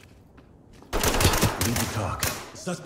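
A rifle fires a rapid burst close by.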